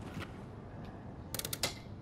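An electric device crackles and sparks.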